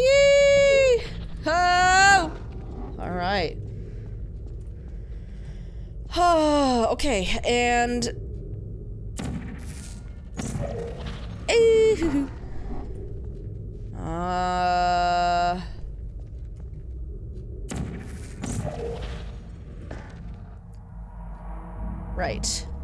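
A young woman talks quietly into a close microphone.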